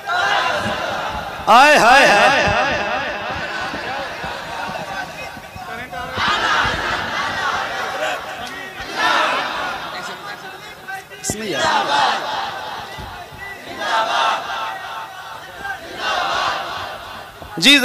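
A man speaks with animation through a microphone and echoing loudspeakers.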